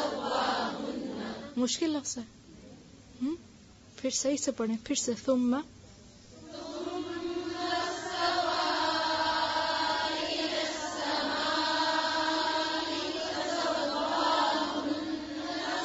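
A woman recites in a slow, drawn-out chant close by.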